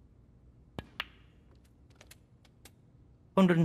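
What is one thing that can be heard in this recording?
Snooker balls knock against each other with light clicks.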